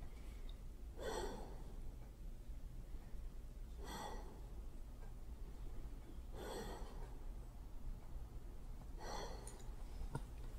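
An elderly woman breathes heavily at a slow, even pace.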